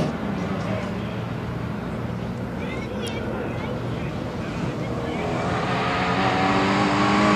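A rally car engine revs loudly as the car approaches, growing louder.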